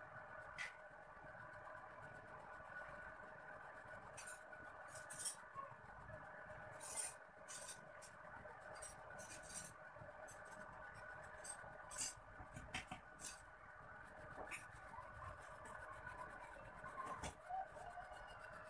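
A pencil scratches and scrapes across paper in short strokes.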